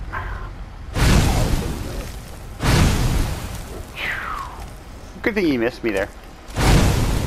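Fire spells roar in loud bursts.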